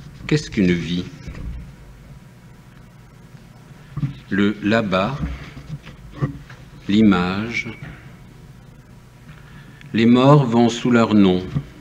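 An elderly man reads aloud calmly and slowly, close by, with pauses between phrases.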